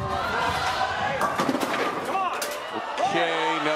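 A bowling ball crashes into pins that clatter and scatter.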